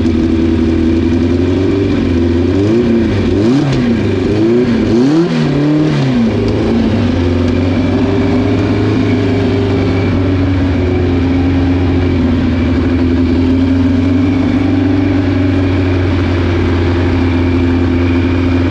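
A car engine idles with a steady, throaty rumble.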